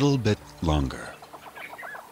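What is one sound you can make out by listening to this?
A buffalo lows deeply, close by.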